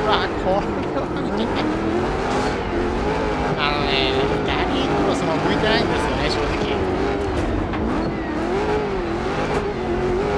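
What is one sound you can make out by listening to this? A race car engine roars and revs up and down steadily.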